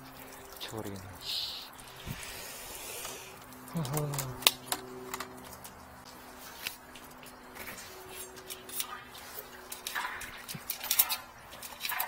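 A plastic cable rattles and scrapes as it is handled.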